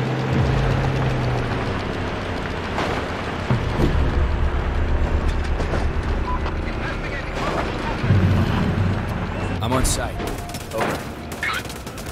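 A car engine rumbles and revs steadily while driving.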